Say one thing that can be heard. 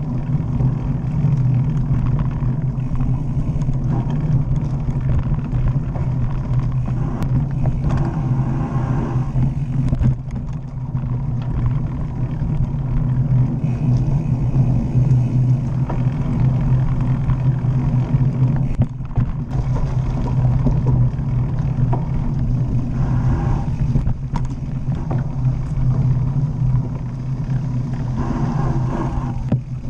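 A mountain bike rolls and rattles over a dirt trail.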